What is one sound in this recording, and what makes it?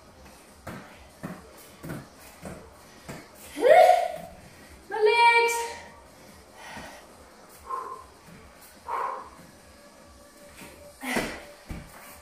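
Feet thump softly and rhythmically on a rubber floor.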